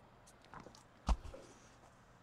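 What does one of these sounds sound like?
A hollow object knocks down onto a table.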